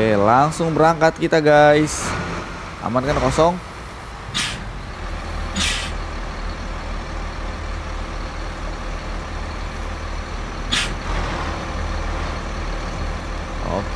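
A bus engine hums low and steady.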